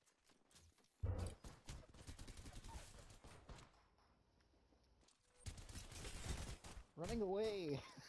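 An energy rifle fires in rapid crackling bursts.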